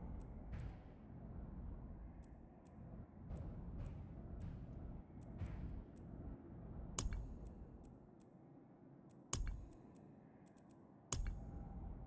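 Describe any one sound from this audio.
Soft interface clicks tick as menu items change.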